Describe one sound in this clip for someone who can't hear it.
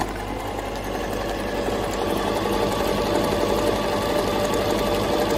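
A sewing machine whirs steadily as its needle stitches rapidly.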